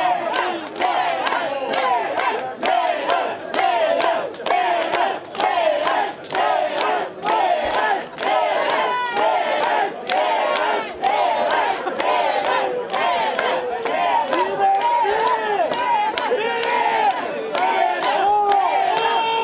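A band plays lively music outdoors.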